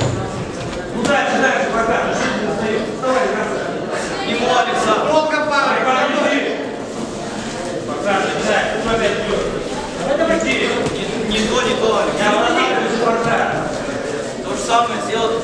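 Boxing gloves thud against each other and against bodies.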